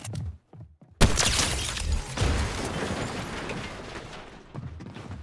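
Building pieces shatter and crash loudly, then the noise slowly dies away.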